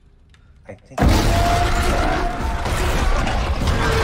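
A large creature roars loudly.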